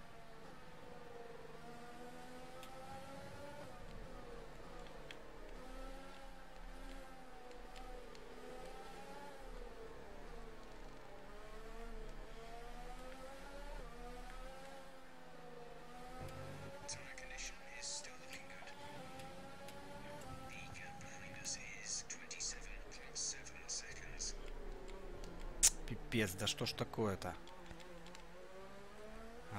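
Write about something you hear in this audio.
A racing car engine whines, rising and falling in pitch as it shifts gears.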